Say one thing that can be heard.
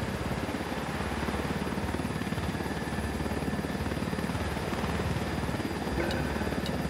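Helicopter rotor blades thump rapidly and steadily overhead.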